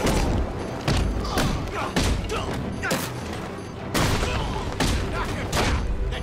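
Heavy punches and kicks land hard in a fast brawl.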